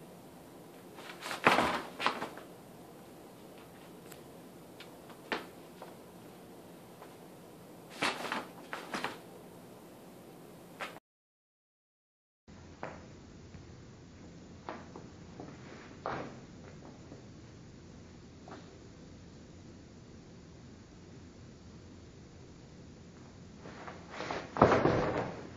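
Stiff paper crinkles and rustles in short bursts as a cat paws and pounces on it.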